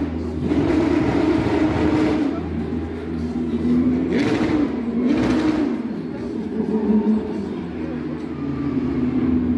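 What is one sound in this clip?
Race car engines rumble and roar loudly, outdoors.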